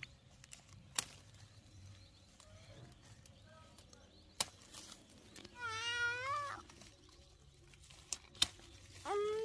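Pruning shears snip through fruit stems with sharp clicks.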